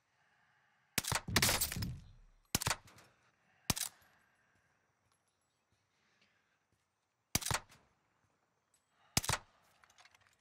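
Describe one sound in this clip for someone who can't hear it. A rifle fires several loud, sharp shots.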